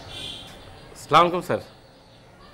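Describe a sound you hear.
A middle-aged man talks on a phone.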